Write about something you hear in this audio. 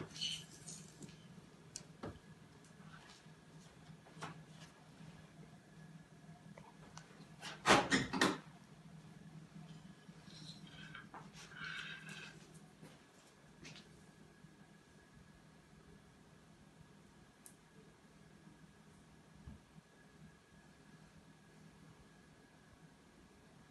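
A dog's claws click and tap on a tile floor.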